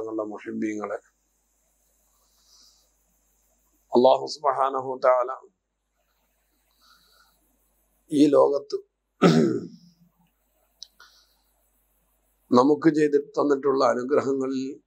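A man chants melodically into a microphone in short phrases with pauses.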